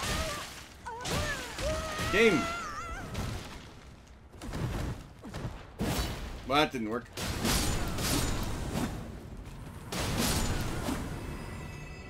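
Sword blows strike and slash in quick bursts.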